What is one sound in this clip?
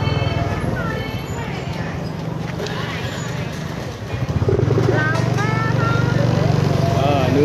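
Men and women chatter nearby in a busy street.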